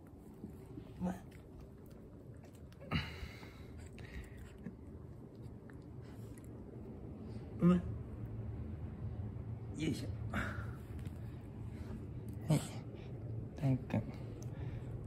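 A puppy yips and whimpers close by.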